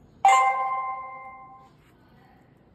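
A ringing electronic chime sounds and fades.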